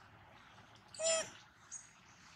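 A baby monkey gives a short, high squeal close by.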